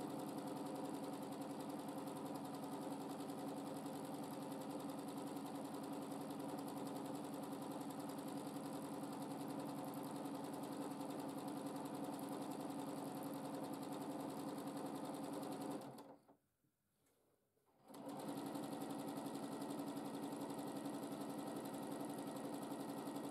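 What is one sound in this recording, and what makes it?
A sewing machine hums and rattles rapidly as it stitches, with a brief pause.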